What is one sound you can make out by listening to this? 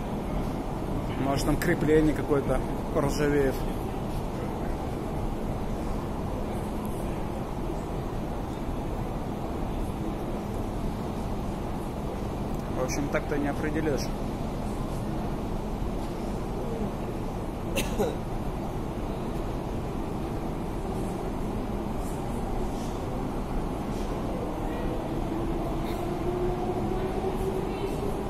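An escalator hums and rumbles steadily in a large echoing tunnel.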